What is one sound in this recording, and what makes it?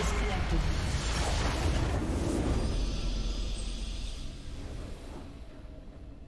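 A loud magical blast crackles and roars, then fades.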